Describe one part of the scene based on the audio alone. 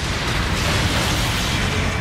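An explosion bursts loudly.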